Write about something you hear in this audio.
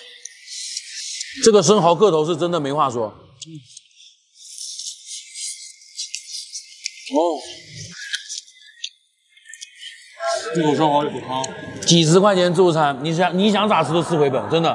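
Shells clink and crack as oysters are eaten.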